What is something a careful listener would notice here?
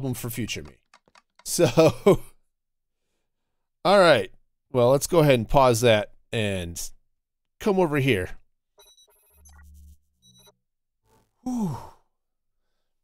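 A man talks with animation into a close microphone, in short bursts.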